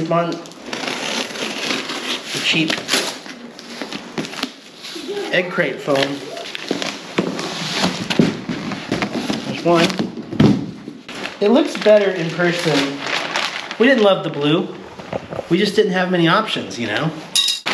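A man talks casually and close by.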